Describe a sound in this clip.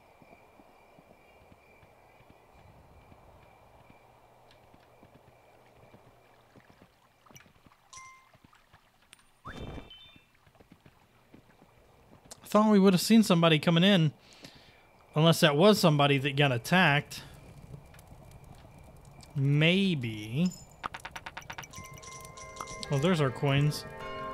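A horse trots steadily.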